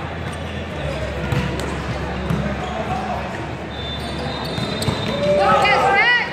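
A volleyball thuds as players hit it in a large echoing hall.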